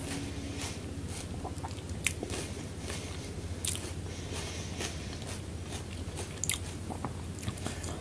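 A woman chews soft food close to a microphone, with wet, smacking mouth sounds.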